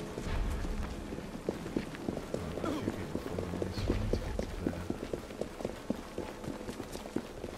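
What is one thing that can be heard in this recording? Footsteps run quickly over wet cobblestones.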